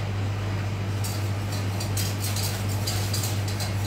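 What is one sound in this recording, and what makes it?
A metal utensil scrapes and clinks against a pot.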